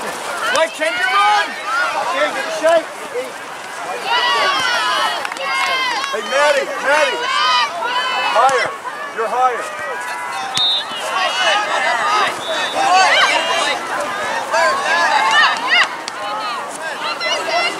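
Young women shout and call out to each other across an open playing field.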